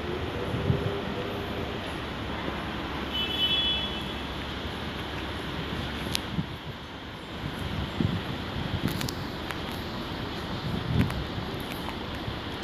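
Wind rumbles outdoors against the microphone.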